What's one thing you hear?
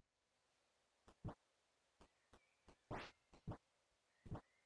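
Light footsteps patter in a video game.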